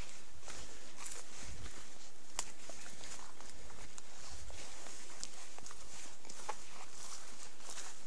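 Footsteps crunch on a leafy dirt path.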